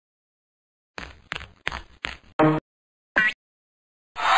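A woman speaks with animation in short bursts.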